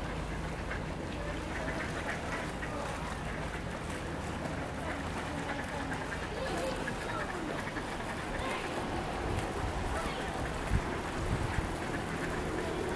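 Ducks quack now and then.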